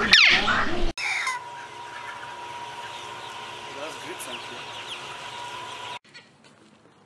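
Chickens cluck softly.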